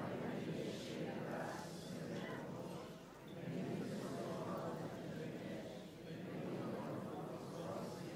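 An elderly man speaks slowly and calmly into a microphone in a large echoing space.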